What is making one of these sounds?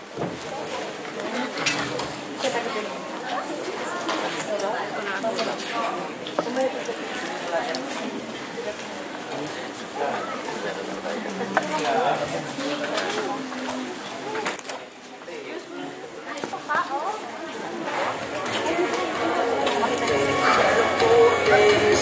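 Many men and women chatter nearby in a large, echoing room.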